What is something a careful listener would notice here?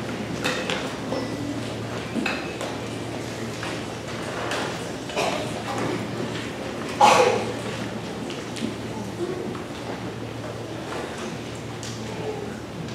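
Music stands and instruments knock and clatter.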